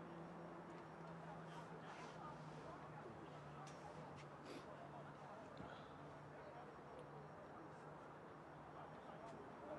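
A steady outdoor murmur of wind and distant noise fills the air.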